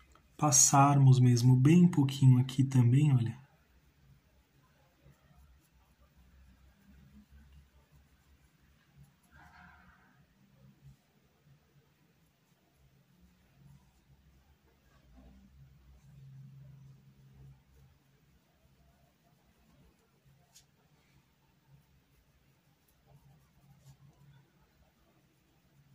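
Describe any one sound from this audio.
A paintbrush strokes softly across fabric.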